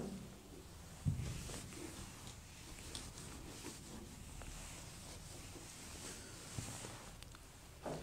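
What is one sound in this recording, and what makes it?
A board eraser wipes softly across a whiteboard.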